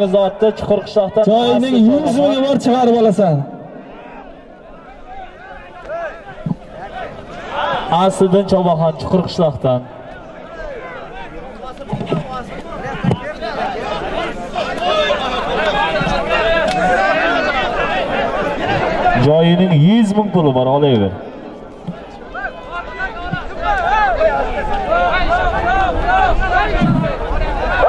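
A crowd of men shouts and yells outdoors.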